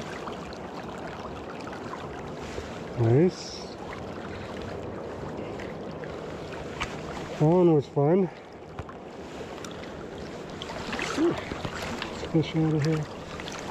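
Water laps gently close by.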